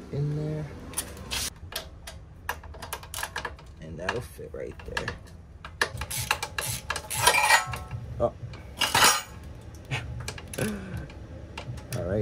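A socket wrench ratchets and clicks against metal.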